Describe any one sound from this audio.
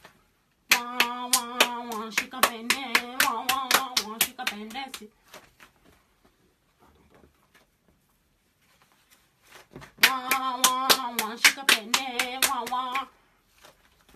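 Two people clap hands together in a quick rhythm.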